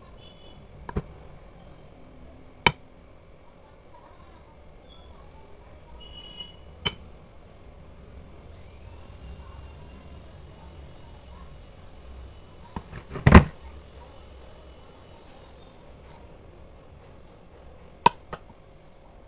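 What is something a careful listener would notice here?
A spoon clinks against a mug.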